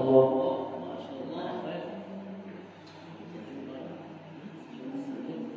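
A group of men recite together in a chanting voice in an echoing room.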